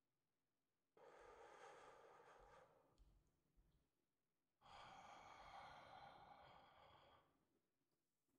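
A young man breathes in and out slowly and deeply.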